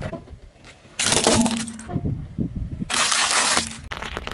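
A car tyre crushes crackling paper objects.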